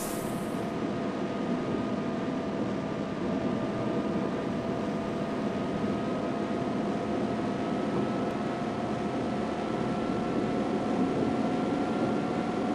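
Tyres roll over a smooth road.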